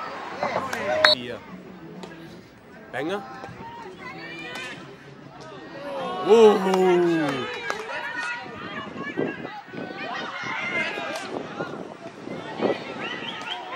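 A hockey stick sharply strikes a ball.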